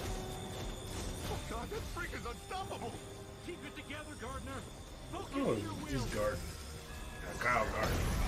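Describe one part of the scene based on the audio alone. Energy blasts roar and crackle.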